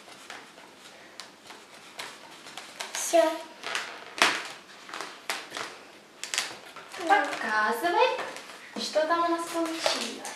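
Balloons squeak and rub as they are handled.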